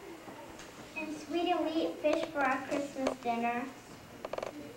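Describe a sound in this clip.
A young girl speaks into a microphone, heard from across a hall.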